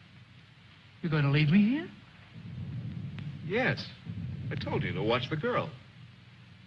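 A man speaks firmly close by.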